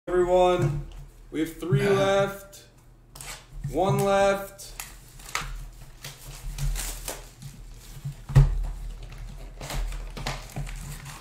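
Cards rustle and slide in hands.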